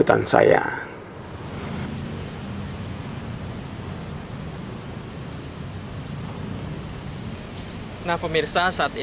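A river flows with a low steady rush.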